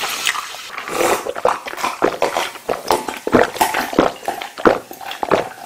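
A man gulps down a drink.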